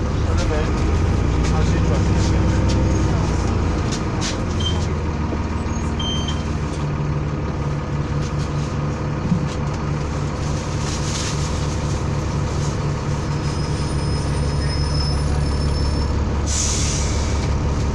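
A bus engine hums and rumbles steadily inside the cabin.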